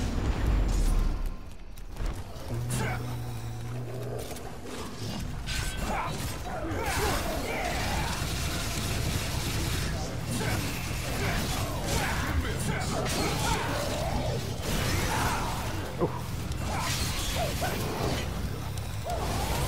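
Swords clash and slash in a fast fight.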